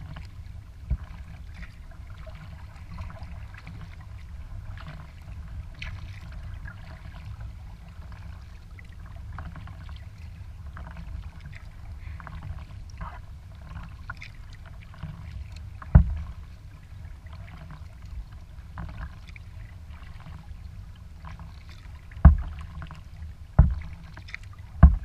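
Water laps and splashes against a kayak's hull.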